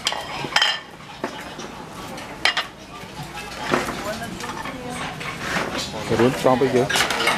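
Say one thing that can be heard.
Dishes and utensils clink and clatter.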